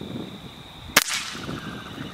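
An air rifle fires with a sharp crack.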